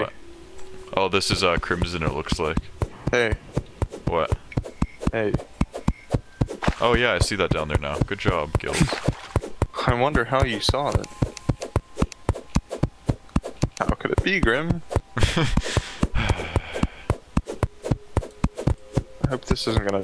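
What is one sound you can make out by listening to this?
Rapid soft digging thuds repeat quickly.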